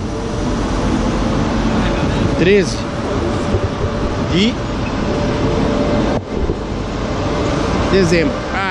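A steady background murmur fills the air.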